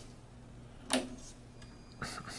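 A switch clicks as a knob is turned.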